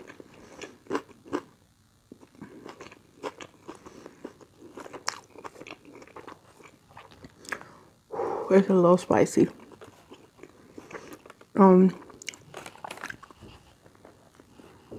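A young woman chews food noisily up close, with wet smacking sounds.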